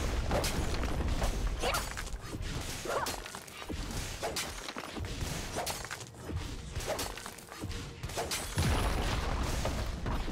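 Video game combat effects clash and crackle with sharp hits.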